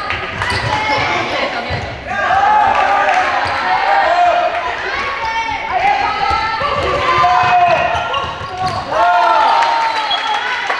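Young girls shout and call out to each other across a large echoing hall.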